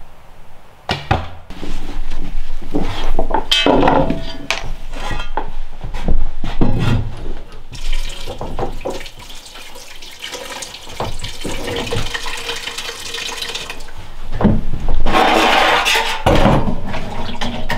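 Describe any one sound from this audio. Dishes and utensils clink and clatter on a counter nearby.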